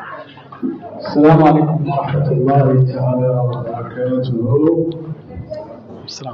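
An elderly man speaks with animation into a microphone over loudspeakers.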